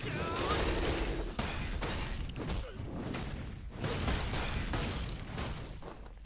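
Sword slashes and magic blasts clash in a game fight.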